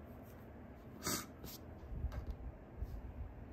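A small plastic toy knocks lightly onto a table.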